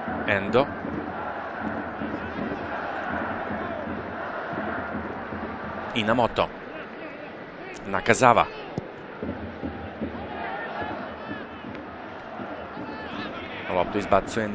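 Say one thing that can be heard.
A large stadium crowd roars and murmurs steadily.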